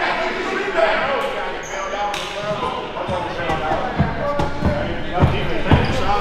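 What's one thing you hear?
Sneakers squeak on a wooden court in an echoing gym.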